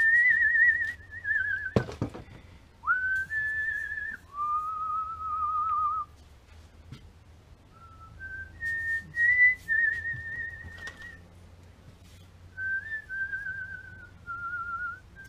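A man whistles a wavering tune close by.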